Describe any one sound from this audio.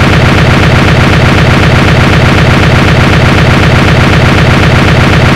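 Loud electronic music plays with a fast, steady thumping beat.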